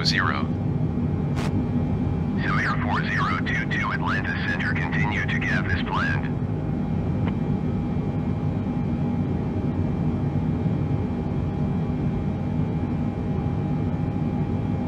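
A low, steady engine drone hums throughout.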